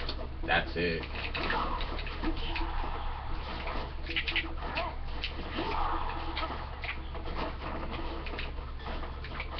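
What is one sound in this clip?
Video game fight sounds of hits, whooshes and blasts play through a television speaker.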